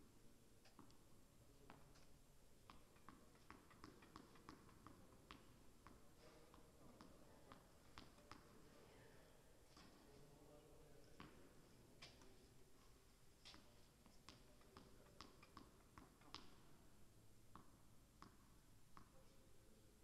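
A tennis ball bounces repeatedly on a hard court in a large echoing hall.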